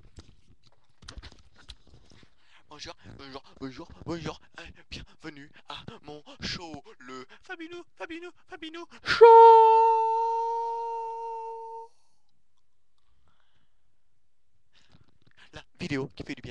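A young man talks excitedly, close to a microphone.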